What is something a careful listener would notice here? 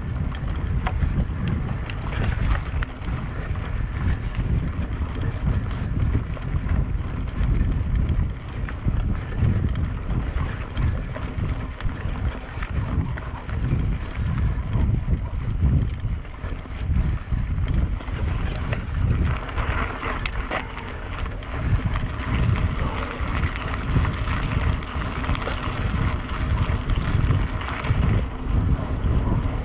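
Wind buffets the microphone outdoors as a mountain bike rides along.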